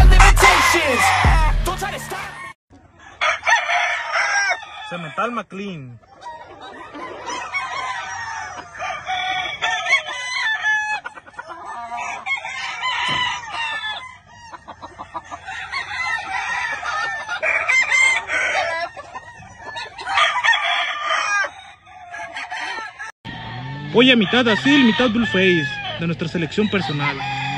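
Chickens cluck and crow nearby.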